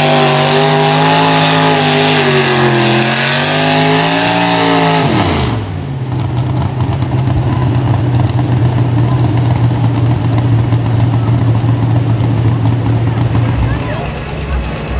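A tractor engine roars loudly, its pitch rising and falling, then settles into a steady drone.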